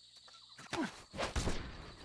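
Grass rustles as a soldier crawls through it.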